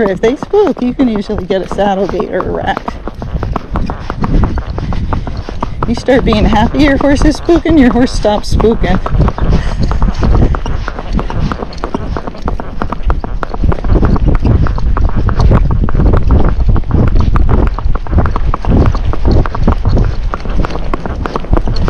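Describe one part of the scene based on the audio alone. A horse's hooves clop quickly on a paved road.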